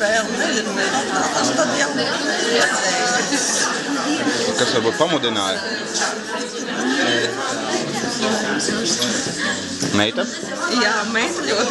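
A middle-aged woman talks nearby.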